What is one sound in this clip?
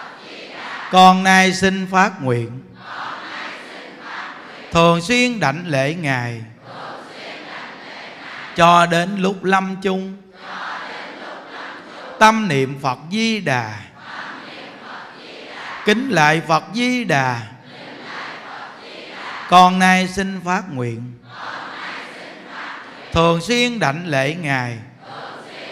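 A group of men chant together in repeated phrases.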